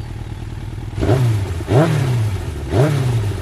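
A motorcycle engine idles and revs up sharply several times.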